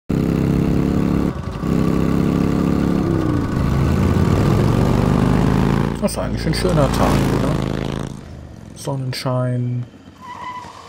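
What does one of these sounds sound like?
A motorcycle engine rumbles loudly and revs.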